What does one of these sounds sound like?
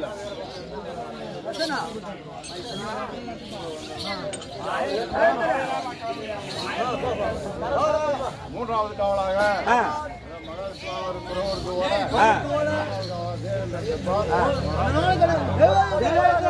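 A man sings loudly, his voice ringing through a loudspeaker.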